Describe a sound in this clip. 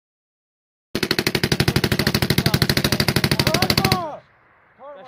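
A machine gun fires a rapid, sustained burst close by.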